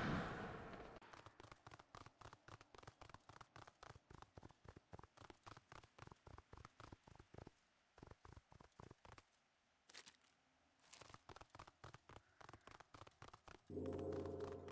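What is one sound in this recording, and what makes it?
Footsteps patter quickly and steadily on a dirt path.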